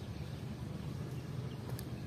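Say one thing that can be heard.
Footsteps tread on stone paving.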